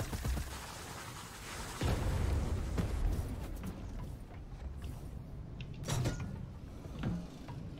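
A ball rolls along with a low rumble.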